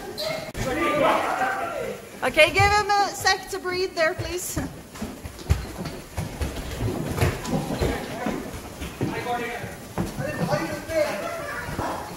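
A ball thuds against boards and shoes.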